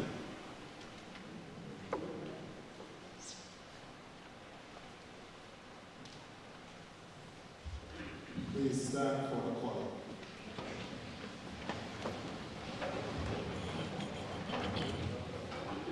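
A crowd murmurs quietly in a large echoing hall.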